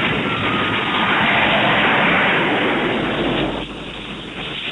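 A train crashes and grinds along the ground.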